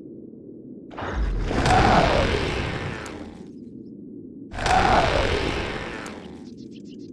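Heavy explosions boom and rumble, each fading over a few seconds.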